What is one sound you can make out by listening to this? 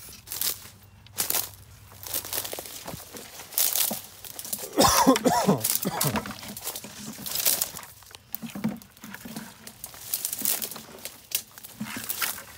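Footsteps crunch and rustle through dense undergrowth.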